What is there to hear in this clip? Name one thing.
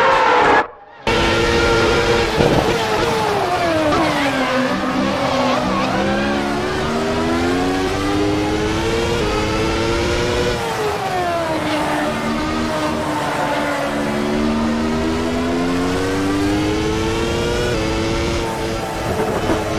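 A race car engine drones loudly up close, climbing in pitch and dropping as it shifts gears.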